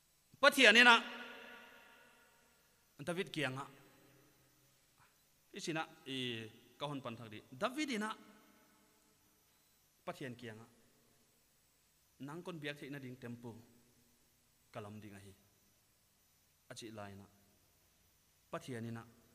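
A man preaches with animation into a microphone over a loudspeaker, in bursts with pauses, his voice echoing in a hall.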